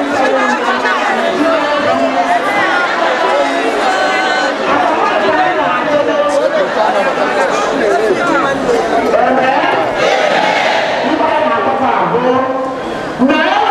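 A large crowd sings together outdoors.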